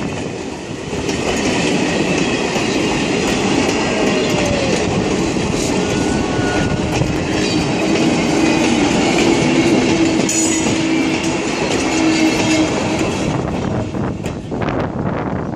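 Steel wheels clatter and squeal on the rails.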